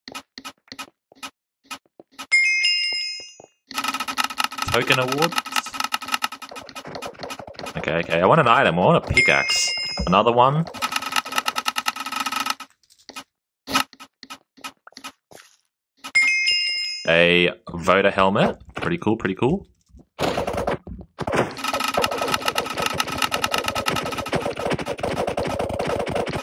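Quick ticking clicks sound as a game's prize roulette spins.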